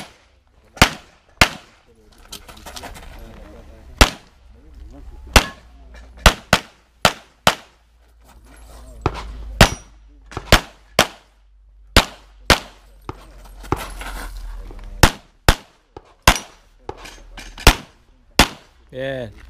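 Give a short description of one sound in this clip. Pistol shots crack loudly outdoors, one after another.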